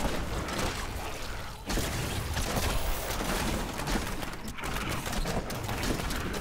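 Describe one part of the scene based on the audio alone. Fiery spells blast and crackle in quick bursts.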